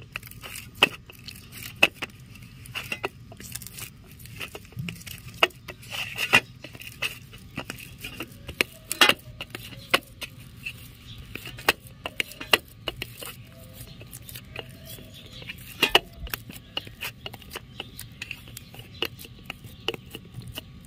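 Hands knead soft dough, pressing and squishing it against a metal plate.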